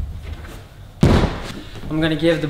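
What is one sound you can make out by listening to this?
A thud sounds as a man drops onto a padded floor.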